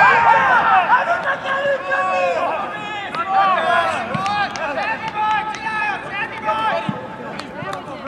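Several young men shout and cheer excitedly outdoors.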